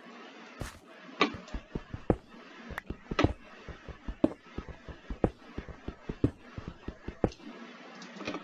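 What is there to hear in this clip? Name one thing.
A pickaxe chips rapidly at stone blocks with short knocking taps.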